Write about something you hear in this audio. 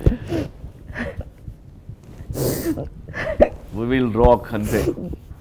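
A young man speaks with emotion close by.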